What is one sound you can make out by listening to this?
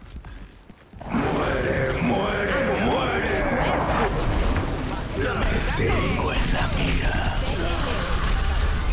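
Energy weapons blast and crackle in a noisy fight.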